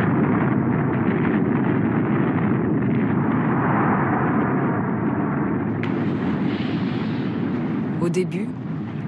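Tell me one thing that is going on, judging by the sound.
A huge explosion roars with a deep, long rumble.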